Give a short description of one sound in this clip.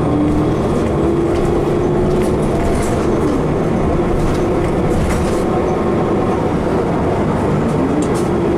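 A bus rattles and creaks as it rolls along the road.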